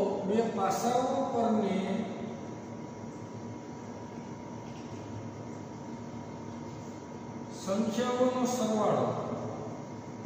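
A man speaks calmly nearby, explaining.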